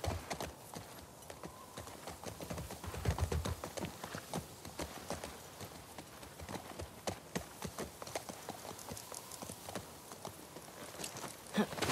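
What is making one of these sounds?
A horse's hooves thud softly as it walks through tall grass.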